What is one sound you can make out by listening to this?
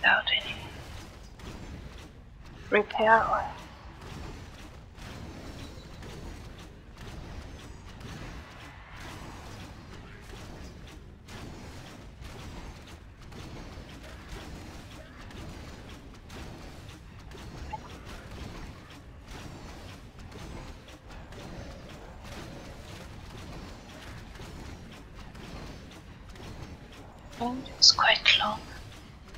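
Magic bolts fire and hit with quick zaps and bursts.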